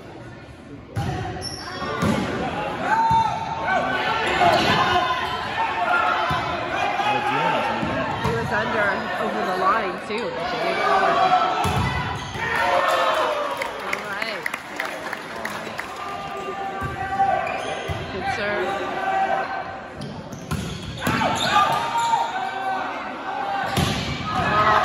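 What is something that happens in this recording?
A volleyball is struck with sharp thumps in an echoing gym.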